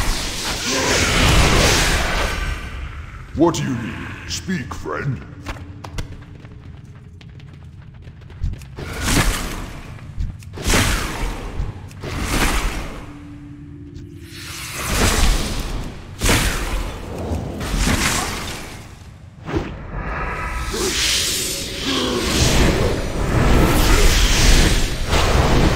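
Blows and hits land during a fight.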